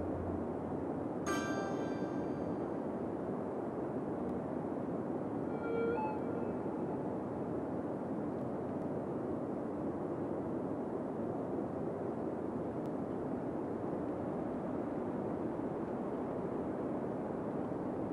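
Distant traffic hums steadily.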